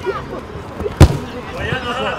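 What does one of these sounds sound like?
A football is kicked with a sharp thump.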